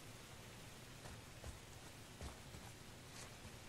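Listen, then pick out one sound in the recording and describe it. Heavy footsteps thud slowly on wooden boards.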